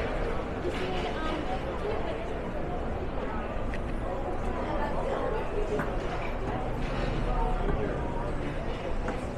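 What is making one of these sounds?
A busy city street hums with traffic in the distance.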